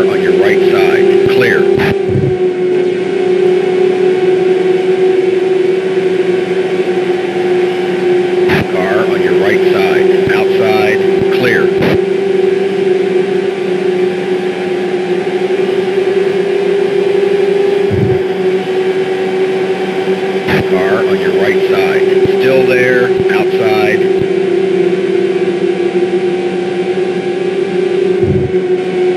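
A racing car engine whines loudly at a high, steady pitch.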